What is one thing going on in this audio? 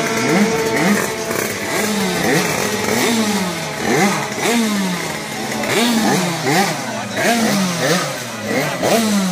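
Small motorcycle engines rev over and over, loud and close.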